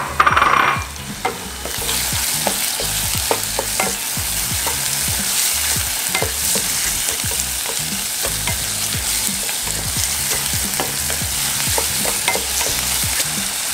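A wooden spatula scrapes and stirs food in a pan.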